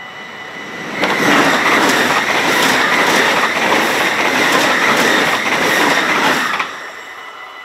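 A train roars past at high speed, close by, with rattling wheels.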